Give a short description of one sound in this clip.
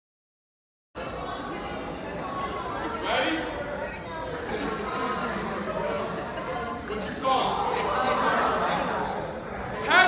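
A man speaks loudly and with animation in a large echoing hall.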